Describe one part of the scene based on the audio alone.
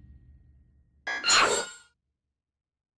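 A short swoosh sounds as a menu closes.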